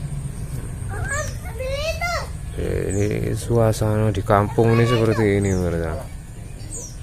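A child calls out loudly nearby.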